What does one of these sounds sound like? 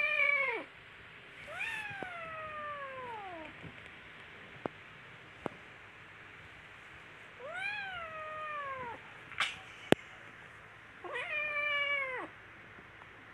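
A kitten meows loudly and repeatedly, close by.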